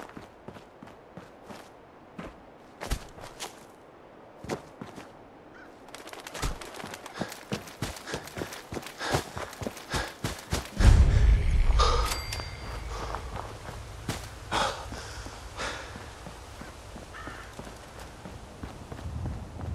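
Footsteps crunch steadily on dirt and gravel.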